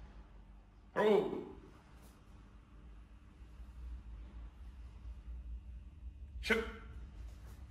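A young man shouts sharply.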